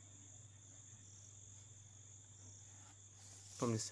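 A pencil scratches along a ruler on paper.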